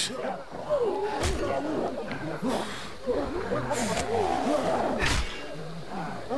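A man speaks in a worried, hoarse voice.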